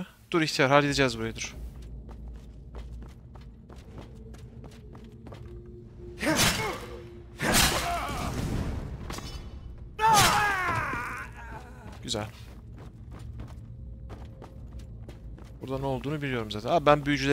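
Footsteps tap steadily on wood and stone.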